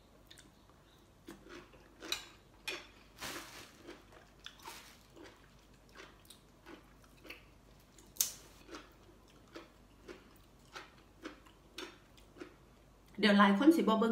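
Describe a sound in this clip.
A young woman chews food with wet, crunchy mouth sounds.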